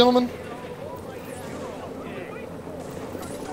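A helicopter whirs overhead.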